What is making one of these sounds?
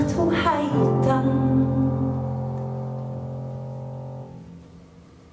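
A woman sings a long final note through a microphone.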